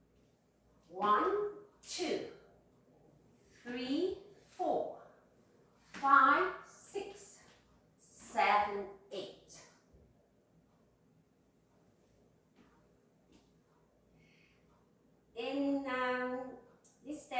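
A woman calls out in short, lively bursts in a room with some echo.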